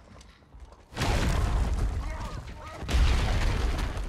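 A stone wall bursts apart with a loud rumbling crash.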